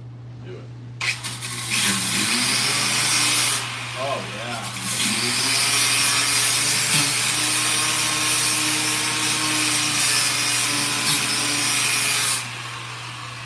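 A power tool whines loudly as it grinds metal, pausing briefly.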